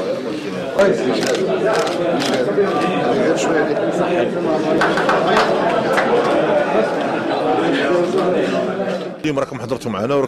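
A crowd of men chatter and greet each other.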